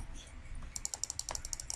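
A game character munches food with quick, repeated crunches.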